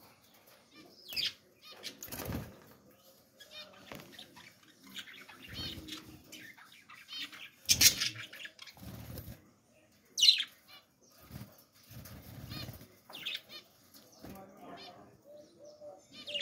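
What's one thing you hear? Small birds chirp and squawk sharply close by.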